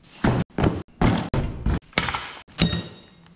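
A coiled hose and a plastic case scrape and knock on a concrete floor.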